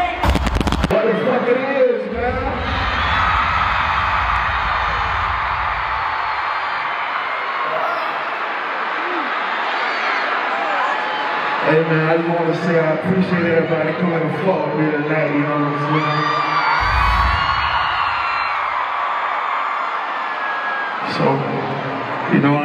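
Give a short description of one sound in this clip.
A large crowd cheers and sings along.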